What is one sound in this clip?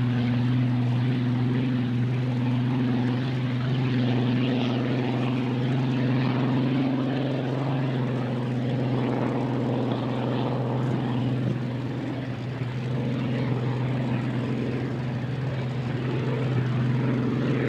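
A racing boat's engine roars loudly and steadily as it speeds across the water.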